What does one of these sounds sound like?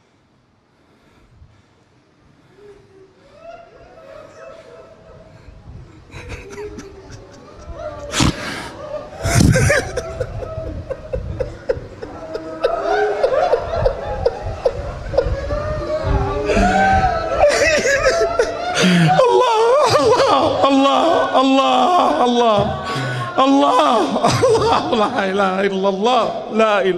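A man preaches into a microphone, his voice rising to passionate shouting in a large echoing hall.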